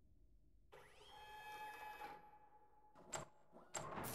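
A robotic arm whirs faintly as it lowers.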